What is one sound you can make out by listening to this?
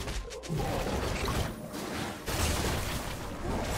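Magic blasts and sword hits crackle and thump in a video game battle.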